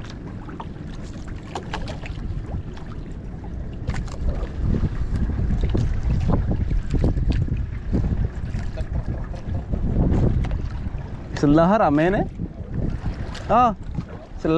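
Waves splash and slap against a small boat's hull.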